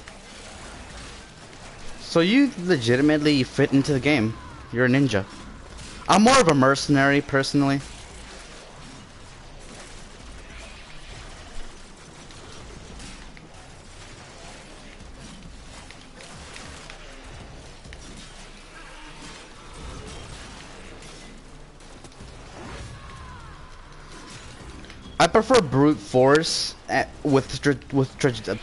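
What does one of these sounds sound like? Blades swing and clash in a fight.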